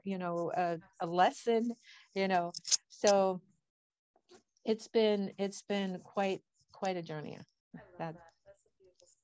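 An elderly woman speaks with animation over an online call.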